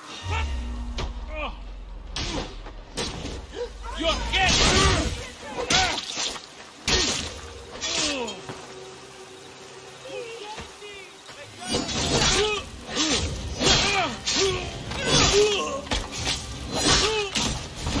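A sword strikes against a shield and metal clangs.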